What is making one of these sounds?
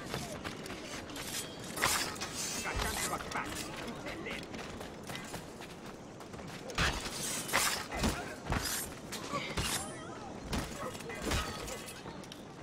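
Blades clash and strike in a sword fight.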